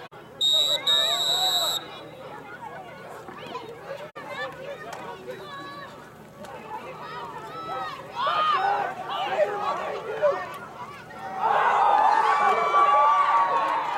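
A crowd of spectators talks and shouts outdoors.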